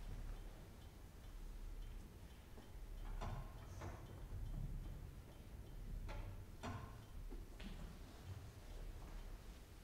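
A grand piano plays softly in a large hall.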